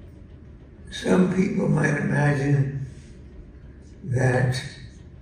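An elderly man speaks slowly into a microphone over loudspeakers in a large echoing hall.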